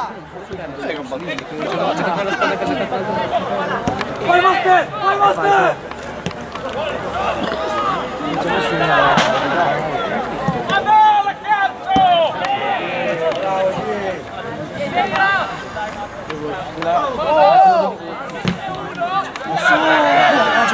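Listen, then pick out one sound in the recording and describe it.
Spectators shout and cheer from the sidelines outdoors.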